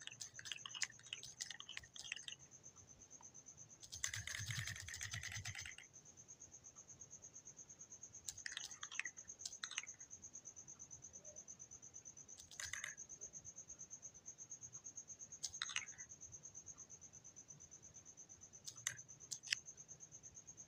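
Short bright chimes pop as blocks are picked up.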